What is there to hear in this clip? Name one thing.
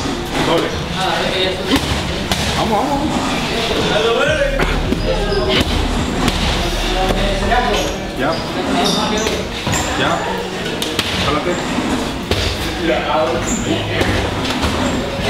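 Gloves thump against punch mitts and a body pad.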